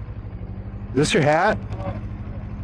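A young man speaks from a car nearby.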